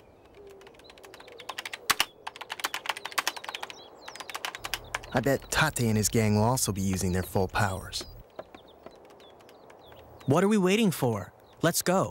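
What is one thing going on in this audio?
Fingers tap rapidly on a laptop keyboard.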